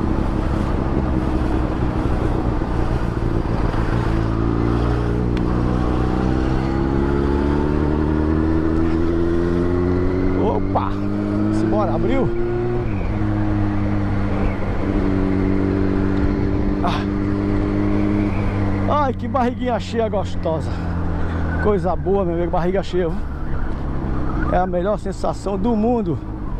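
A motorcycle engine rumbles close by and revs up and down.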